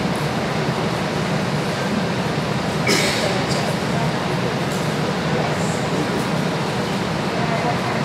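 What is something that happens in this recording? A crowd murmurs quietly in the background.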